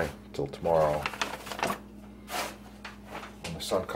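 Paper crinkles as a sheet is lifted and moved aside.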